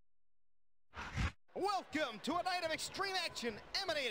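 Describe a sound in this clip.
A crowd cheers in a large arena.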